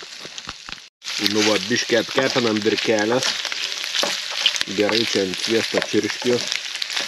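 A spatula stirs and scrapes food in a frying pan.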